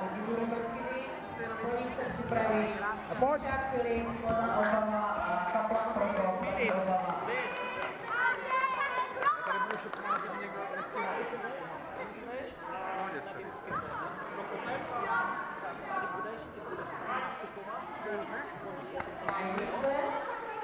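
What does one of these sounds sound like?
Children's voices chatter and shout in a large echoing hall.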